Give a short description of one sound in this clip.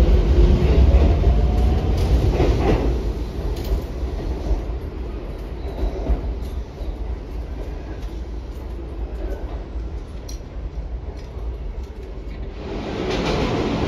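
A train rumbles past along the tracks.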